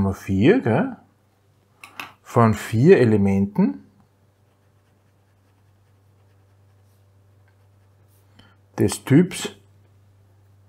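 A middle-aged man speaks calmly through a close microphone, in short phrases with pauses.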